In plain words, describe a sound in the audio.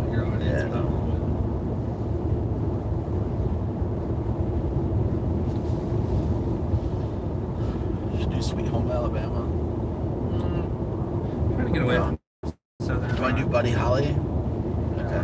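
Steady road and engine rumble fills a car cruising at highway speed.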